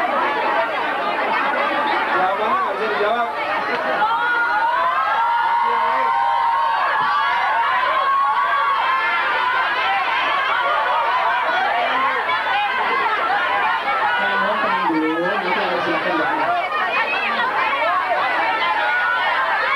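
A large crowd of young people screams and cheers loudly.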